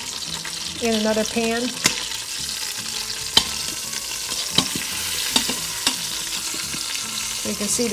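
Metal tongs clink against the side of a metal pot.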